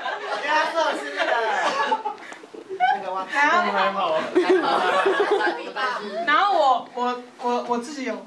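A young woman talks and laughs with animation into a microphone.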